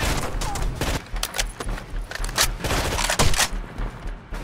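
A rifle is reloaded with metallic clicks.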